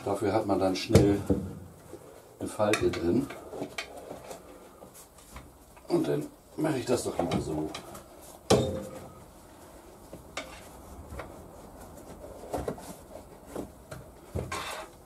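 A rubber tyre thumps and squeaks against a wheel rim.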